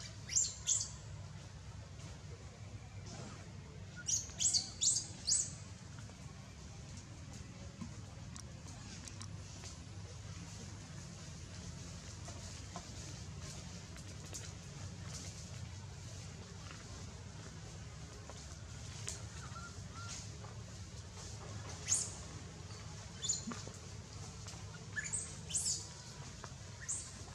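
A baby monkey squeals in short, high cries close by.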